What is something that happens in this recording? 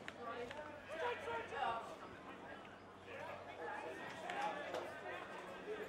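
Spectators cheer and shout from the sideline.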